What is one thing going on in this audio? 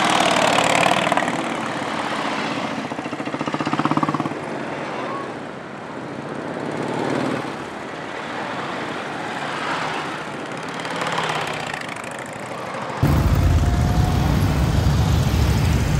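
Motorcycles ride past one after another with engines revving.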